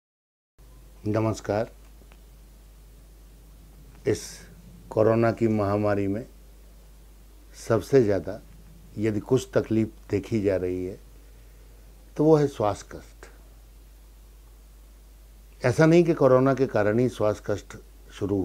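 A middle-aged man speaks calmly and close into a microphone, in short bursts with pauses.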